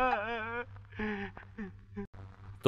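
A man speaks in a strained, emotional voice.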